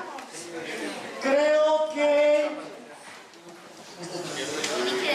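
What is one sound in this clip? Several people talk and murmur nearby.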